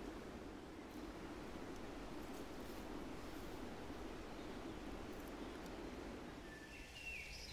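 A dog pads through long grass, rustling it.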